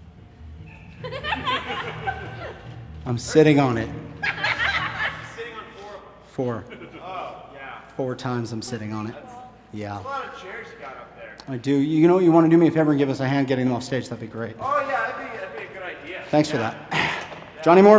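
A middle-aged man speaks theatrically on a stage.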